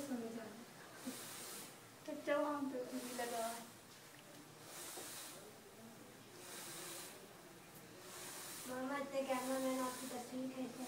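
A breathing machine hisses in slow, regular puffs of air.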